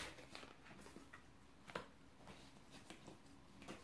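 A playing card is laid down softly on a cloth-covered table.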